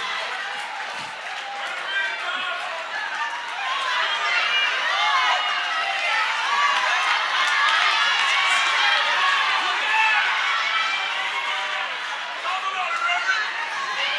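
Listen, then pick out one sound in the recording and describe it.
A crowd cheers and shouts in response.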